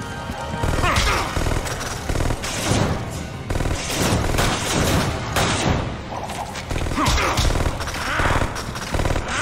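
Heavy blows thud and smack in a close fight.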